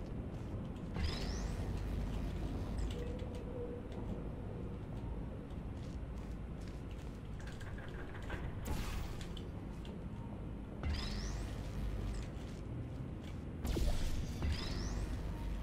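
A game's portal gun fires with sharp rising zaps.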